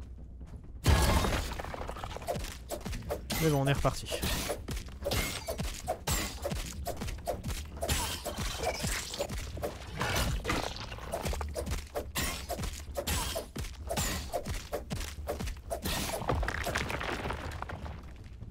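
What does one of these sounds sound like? A weapon strikes a giant insect with quick, hard blows.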